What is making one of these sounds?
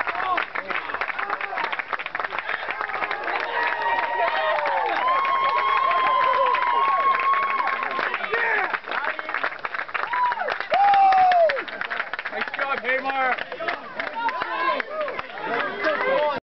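A crowd of young men cheers and shouts excitedly close by.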